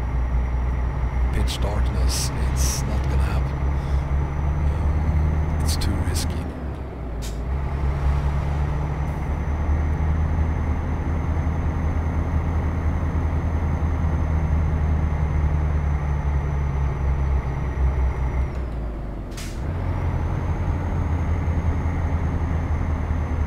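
A heavy truck engine drones steadily, easing off briefly twice as the gears change.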